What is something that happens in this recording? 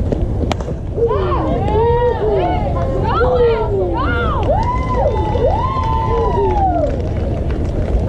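Young women shout and cheer excitedly nearby.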